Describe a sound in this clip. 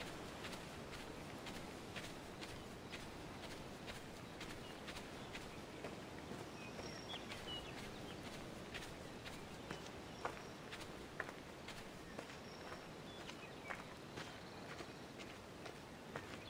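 Wind blows steadily through grass outdoors.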